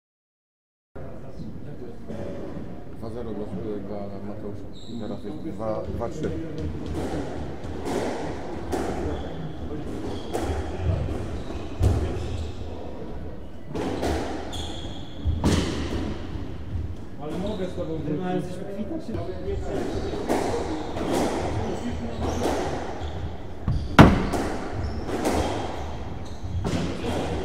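A squash ball smacks hard against the walls, echoing in a large hard-walled court.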